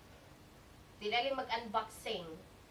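A woman speaks calmly and close by.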